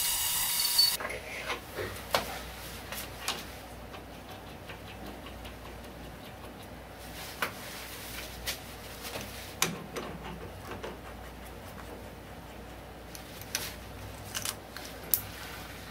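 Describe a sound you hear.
Metal parts clink and click as a lathe chuck is fitted by hand.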